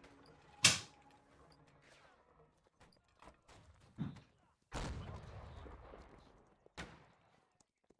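Musket shots crack out nearby.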